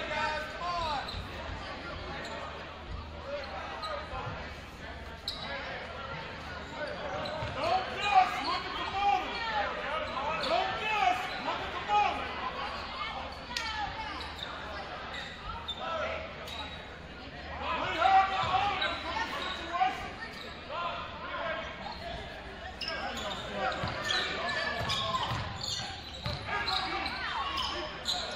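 A crowd of spectators murmurs and calls out in a large echoing gym.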